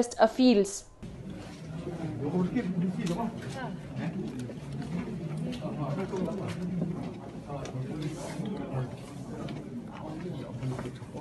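A crowd of people talk at once in a busy room.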